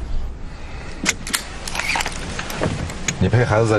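Sharp clicks and knocks sound inside a car.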